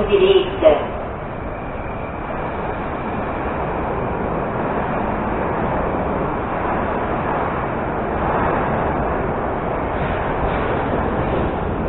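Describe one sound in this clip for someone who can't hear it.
A subway train hums steadily while standing still.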